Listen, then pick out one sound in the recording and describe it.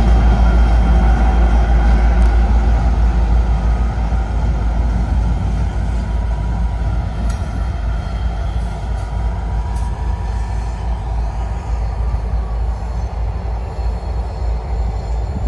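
A freight train rumbles past on the tracks, steady and loud.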